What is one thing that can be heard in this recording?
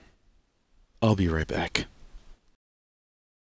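A man speaks loudly and briefly close to a microphone.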